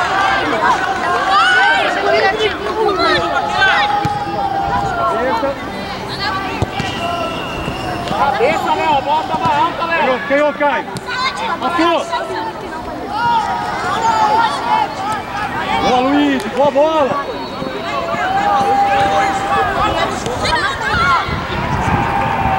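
Children shout and call out to each other across an open field.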